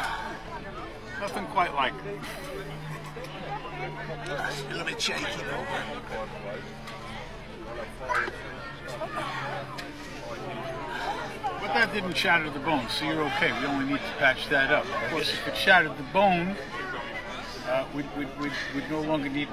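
A middle-aged man talks close by, calmly and with animation.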